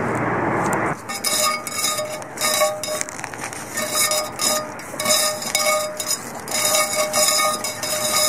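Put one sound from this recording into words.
Dry grass rustles and brushes close by.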